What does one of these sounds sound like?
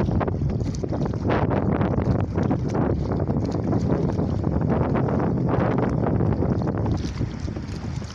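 Oars splash and pull through the water.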